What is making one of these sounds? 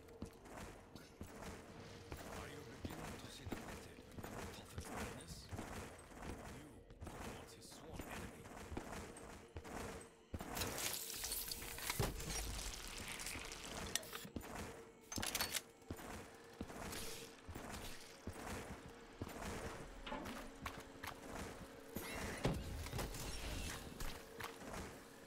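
A gun fires in short rapid bursts.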